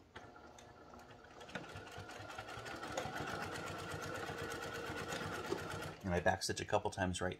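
A sewing machine hums steadily as it stitches.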